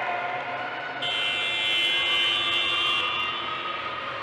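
A whistle blows sharply in a large echoing hall.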